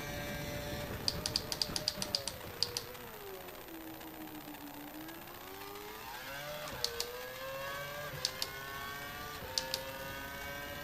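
Gears shift with sharp clicks.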